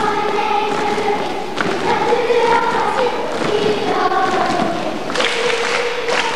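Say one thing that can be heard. Children's feet tap and stamp on a hard floor as they dance.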